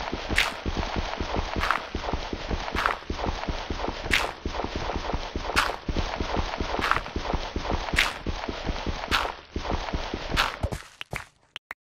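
Water rushes and splashes steadily nearby.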